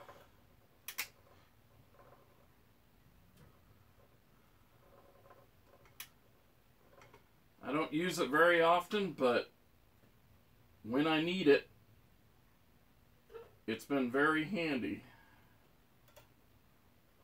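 Small metal parts click against a workbench.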